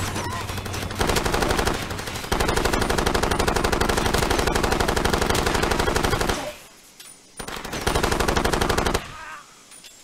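A machine gun fires rapid, loud bursts.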